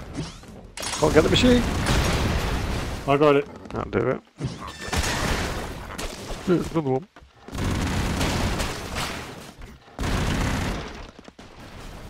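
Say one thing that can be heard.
Explosions boom loudly in bursts.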